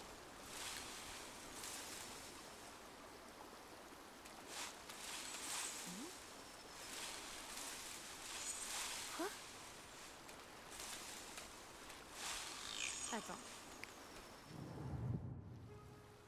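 A river rushes and splashes steadily.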